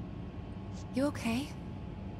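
A young woman asks a short question softly and with concern, close by.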